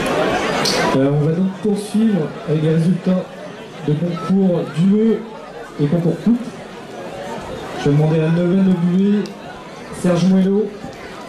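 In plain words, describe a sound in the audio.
A man speaks calmly through a loudspeaker.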